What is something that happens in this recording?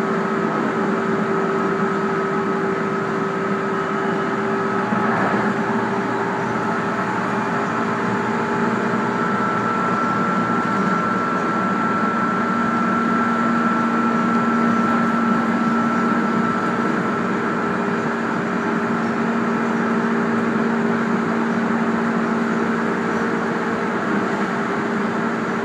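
Train wheels rumble over the track.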